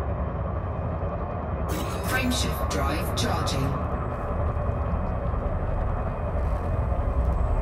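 A spaceship engine hums with a deep, steady rumble.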